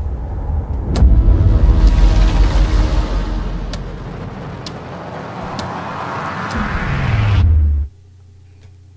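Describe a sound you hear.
Loud music with a heavy bass beat plays through speakers.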